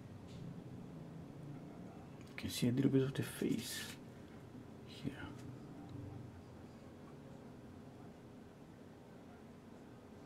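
A brush scrapes softly across canvas.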